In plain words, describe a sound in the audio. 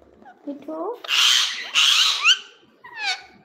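A rose-ringed parakeet lets out shrill screeches.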